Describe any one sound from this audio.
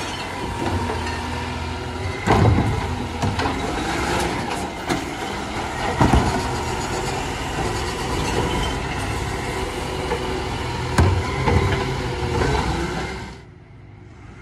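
A garbage truck engine rumbles close by.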